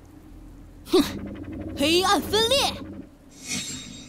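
A young man speaks in a low, intense voice.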